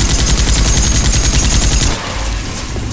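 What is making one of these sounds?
A heavy gun fires in a rapid, roaring burst.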